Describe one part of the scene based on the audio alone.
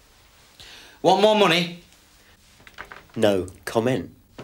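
A young man speaks up close in short bursts, with animation.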